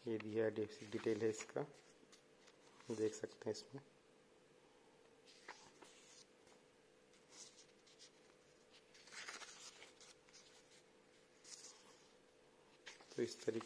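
Paper pages rustle as a booklet's pages are turned.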